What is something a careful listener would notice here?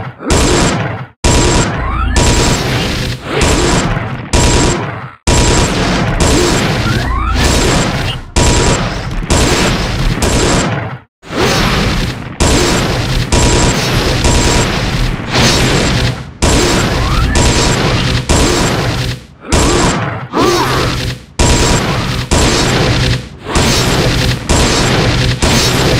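Icy magic blasts crash and shatter again and again amid a fierce fight.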